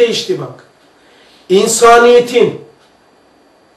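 An elderly man recites in a chanting voice, close by.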